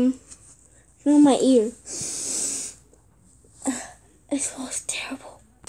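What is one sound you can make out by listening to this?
Soft fabric toys rustle against each other as a hand moves them close by.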